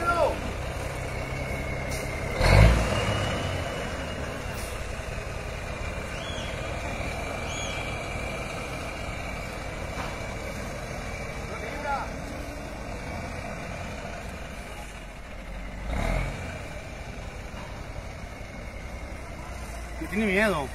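A heavy truck engine rumbles steadily nearby.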